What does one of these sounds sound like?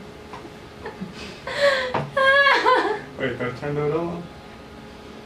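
A young woman laughs loudly close by.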